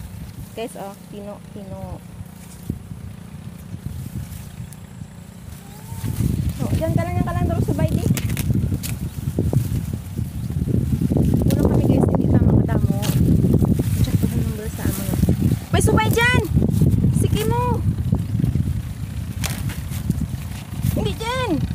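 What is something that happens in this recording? A woman speaks in short bursts close by.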